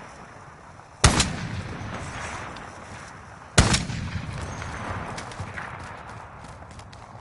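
A rifle fires two loud shots that echo and roll away.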